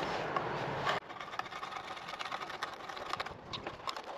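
A hand brace drill bores into wood with a dry, crackling scrape.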